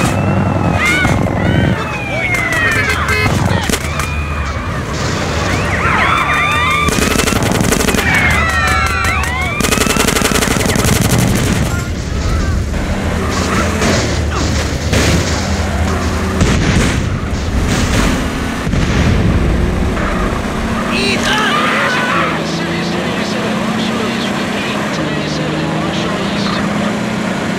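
A car engine roars steadily as a vehicle drives.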